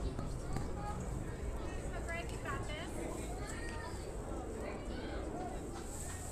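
Young players shout excitedly across an open field, heard from a distance.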